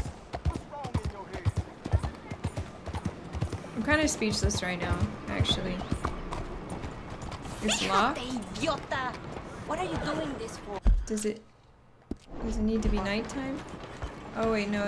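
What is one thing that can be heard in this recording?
A horse's hooves clop on a dirt road.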